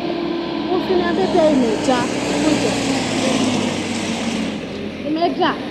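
A bus drives past close by with a loud engine rumble.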